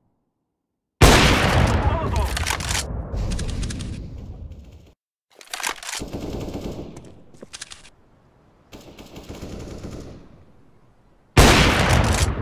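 A sniper rifle in a video game fires a loud, booming shot.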